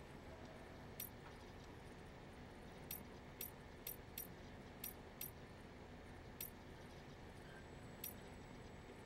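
Short electronic menu clicks and blips sound repeatedly.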